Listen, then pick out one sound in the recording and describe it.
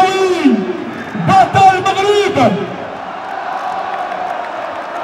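A large crowd cheers loudly in an open stadium.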